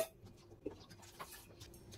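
Oil trickles into a metal bowl.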